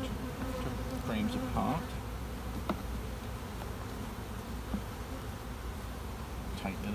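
Bees buzz steadily close by.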